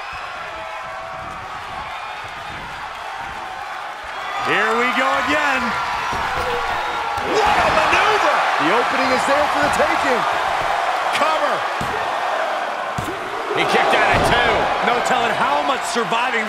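A large crowd cheers and roars in an echoing arena, swelling loudly at times.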